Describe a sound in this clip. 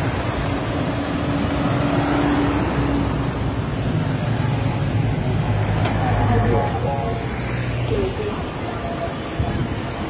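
Car and motorcycle engines hum as traffic drives past on a road.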